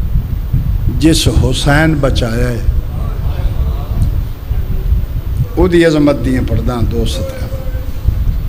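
A man chants loudly into a microphone through loudspeakers.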